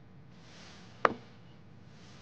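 A small ceramic bottle is set down on a wooden table with a knock.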